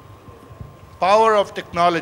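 A man speaks into a microphone through loudspeakers.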